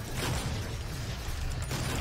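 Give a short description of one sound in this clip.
A heavy blow thuds as a creature is struck.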